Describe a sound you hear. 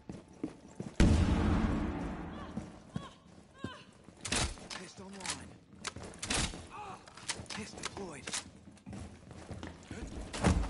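Gunshots ring out in sharp bursts with a short echo.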